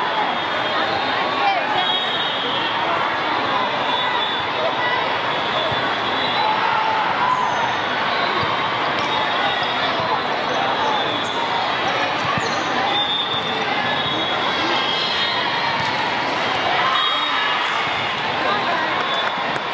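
A volleyball thumps off players' hands and arms.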